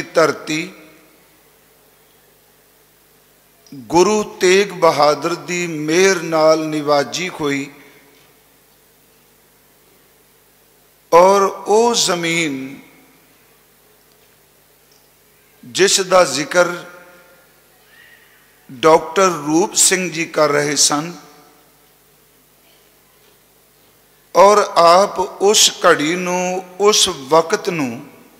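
An elderly man sings slowly and steadily into a microphone, in phrases with pauses between them.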